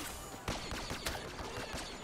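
A grenade explodes with a loud blast.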